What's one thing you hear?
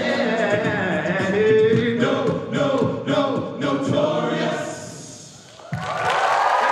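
A group of young men sings together in harmony in a large hall.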